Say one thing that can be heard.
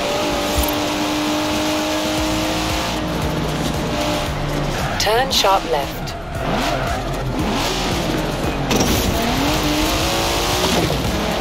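A car engine roars at high revs, its pitch rising and falling with gear changes.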